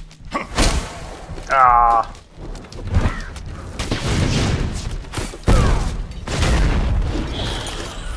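Weapons strike and clash in a fast fight.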